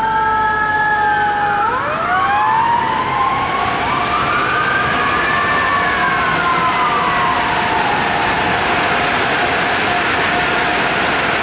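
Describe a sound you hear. A fire engine's siren wails, rising and falling.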